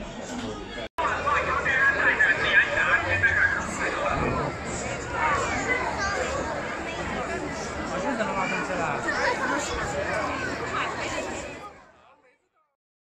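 A large outdoor crowd chatters and murmurs.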